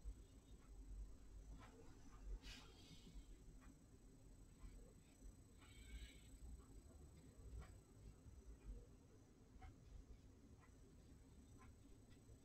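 A brush taps and scrapes softly on paper.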